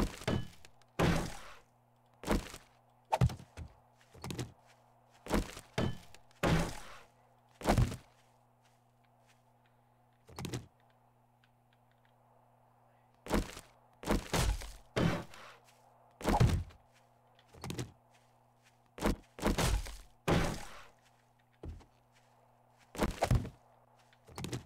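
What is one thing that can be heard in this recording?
A hammer knocks on wood in quick bursts of blows.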